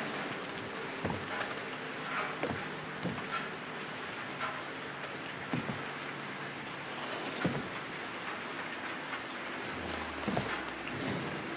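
Footsteps thud slowly across a hollow wooden floor.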